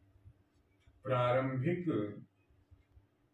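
An elderly man speaks briefly and calmly.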